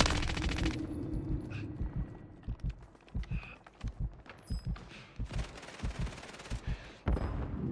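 Quick footsteps thud on hard ground.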